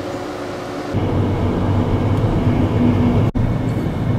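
Car tyres roll on the road.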